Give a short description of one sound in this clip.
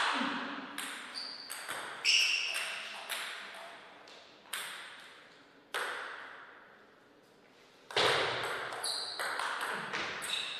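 A table tennis ball clicks sharply against paddles and the table.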